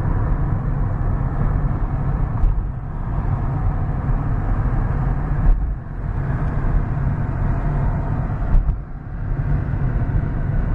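Tyres roll on the road with a steady low roar.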